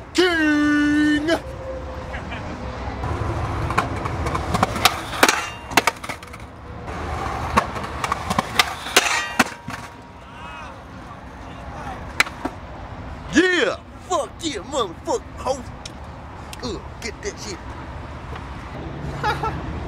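Skateboard wheels roar over concrete.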